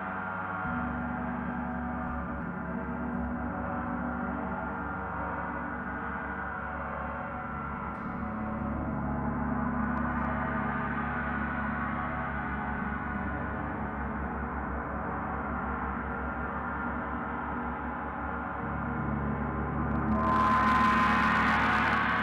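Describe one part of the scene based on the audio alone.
Large gongs hum and shimmer with a deep, steady drone.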